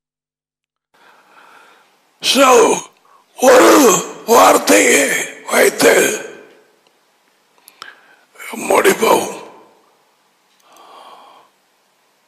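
An elderly man speaks firmly into a headset microphone.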